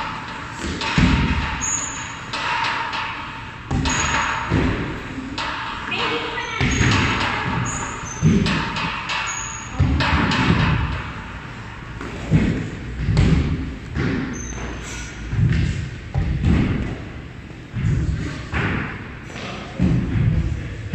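Feet land with dull thuds again and again as people jump.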